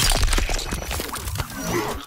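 A flesh wound squelches wetly.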